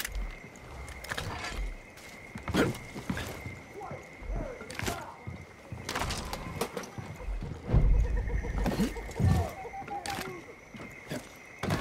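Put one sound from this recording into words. Footsteps thud and creak on wooden boards.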